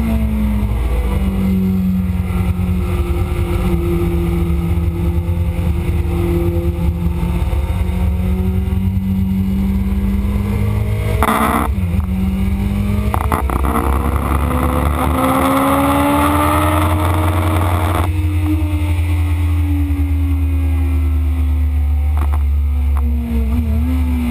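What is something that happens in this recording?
A motorcycle engine roars close by, its pitch rising and falling as the rider shifts gears.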